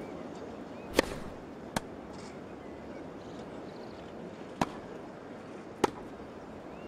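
A tennis ball is struck with sharp, hollow pops.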